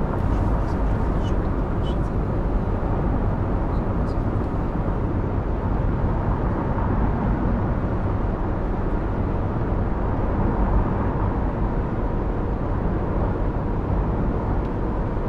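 Tyres roll along a highway with a steady rumble.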